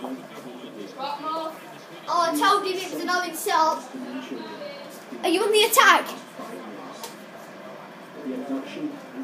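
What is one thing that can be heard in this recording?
A young boy talks excitedly nearby.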